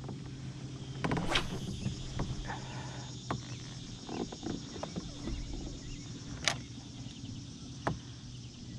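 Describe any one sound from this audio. A fishing reel clicks and knocks as it is handled.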